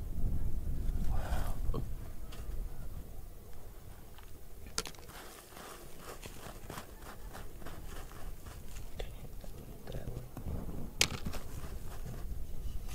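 Fingers scrape and dig through loose dirt and gravel.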